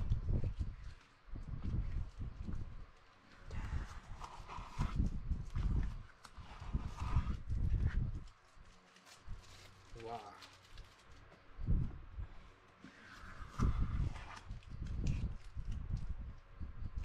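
Masking tape peels and paper rustles close by.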